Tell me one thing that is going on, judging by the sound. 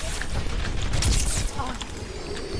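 A weapon fires in rapid bursts.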